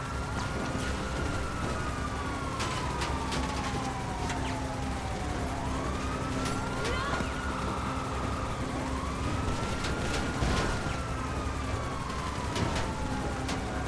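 A heavy tank engine rumbles steadily as the tank rolls along.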